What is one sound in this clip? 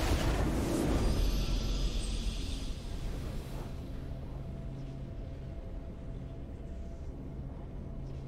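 A triumphant game fanfare rings out and fades.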